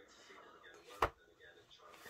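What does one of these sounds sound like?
A book is set down on a table with a soft thump.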